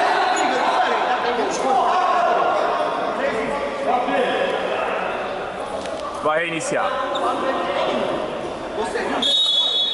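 Men shout and call out across an echoing indoor court.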